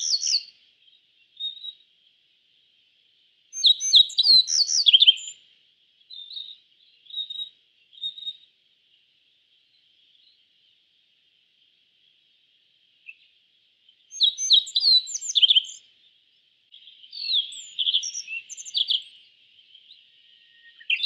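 A small bird sings short bursts of bright chirps and trills.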